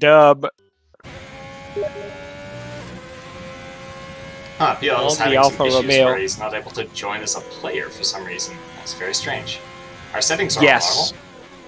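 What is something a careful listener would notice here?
A racing car engine whines at high revs as the car speeds along.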